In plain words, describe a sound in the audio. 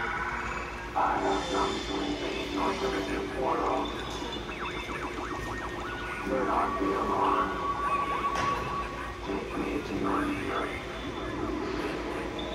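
A talking figure speaks in a deep, distorted electronic voice through a small speaker.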